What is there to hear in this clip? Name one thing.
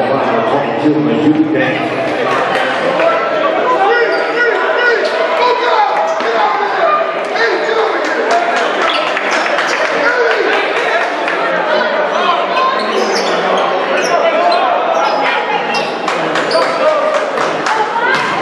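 A crowd of spectators chatters and cheers loudly in a large echoing gym.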